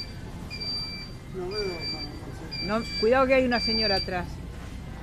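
A mobility scooter beeps repeatedly with short steady tones.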